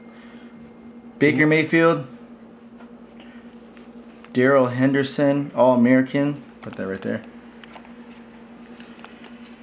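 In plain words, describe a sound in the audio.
Trading cards rustle softly in a plastic sleeve as they are handled.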